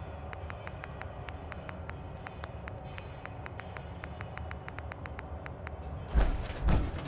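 Quick soft clicks tick as a menu selection moves.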